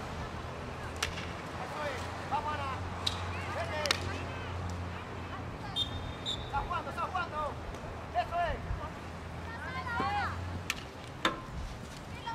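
Hockey sticks strike a ball with sharp clacks.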